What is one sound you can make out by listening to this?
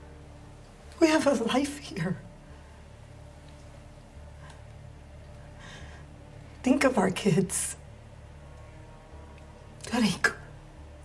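A young woman speaks emotionally, close by.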